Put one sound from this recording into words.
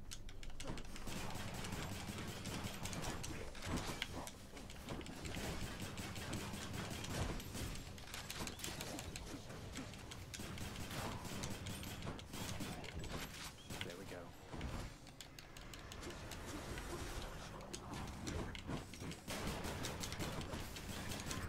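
Game weapons clash and whoosh in quick bursts.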